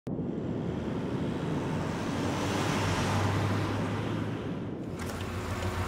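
Tyres roll past on a paved road.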